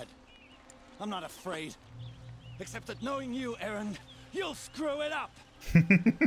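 A man speaks in a gruff, mocking tone.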